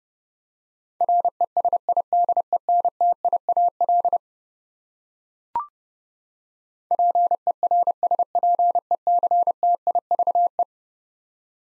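A telegraph key taps out Morse code in short and long beeps.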